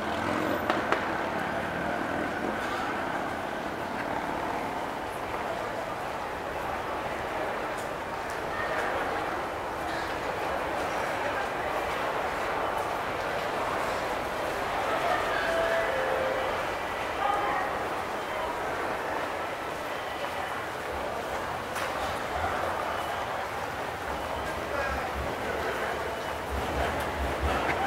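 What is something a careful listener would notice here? Footsteps of many people shuffle across a hard floor.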